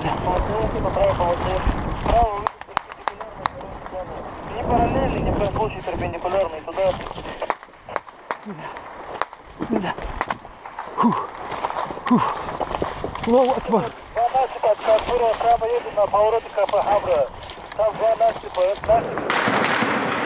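Boots crunch and scrape on loose rocks and rubble as a man runs.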